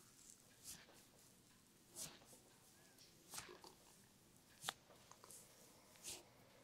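Fingers rub and scratch through hair on a scalp in soft, rustling bursts.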